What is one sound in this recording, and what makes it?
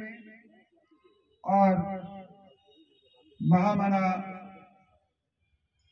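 An elderly man speaks loudly into a handheld microphone, heard through a loudspeaker, in short bursts.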